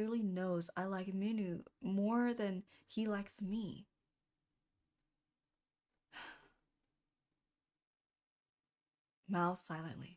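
A young woman reads aloud with animation close to a microphone.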